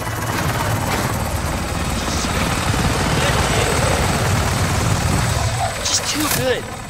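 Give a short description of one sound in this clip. A helicopter's rotor thumps loudly overhead.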